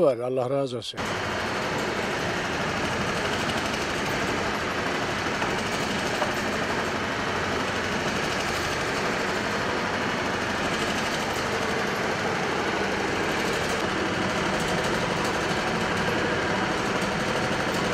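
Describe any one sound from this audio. A machine whirs and rattles steadily.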